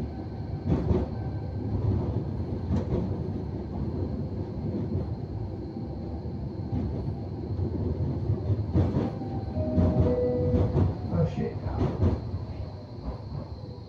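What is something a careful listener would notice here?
A tram rumbles steadily along the rails, heard from inside.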